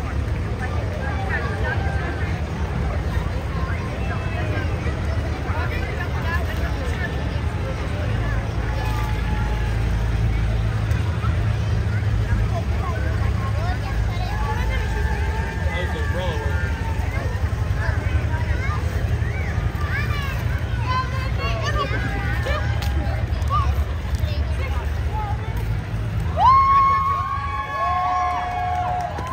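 A crowd of people chatters along the street outdoors.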